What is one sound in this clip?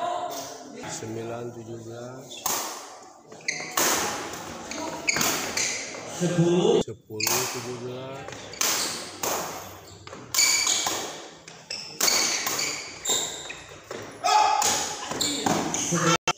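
Rackets smack a shuttlecock back and forth in a large echoing hall.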